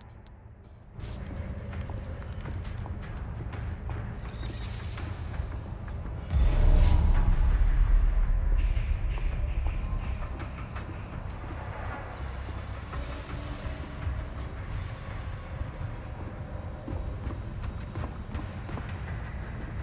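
Footsteps walk across creaking wooden boards.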